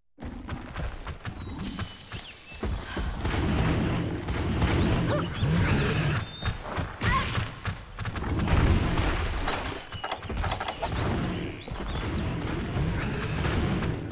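Footsteps rustle quickly through dense leaves and grass.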